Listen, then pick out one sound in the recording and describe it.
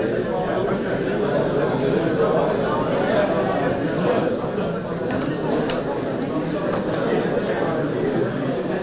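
A crowd of men and women chatter loudly in a large echoing hall.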